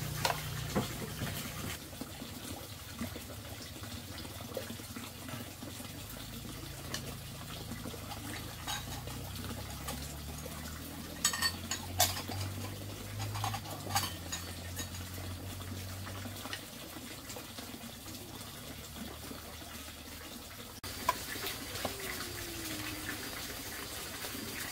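A plastic ladle clinks and scrapes against a bowl.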